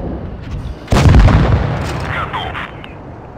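An explosion bursts with a deep blast.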